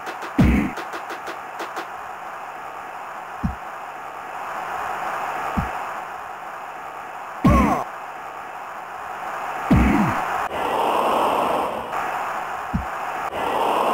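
A football is kicked with short, dull thumps now and then.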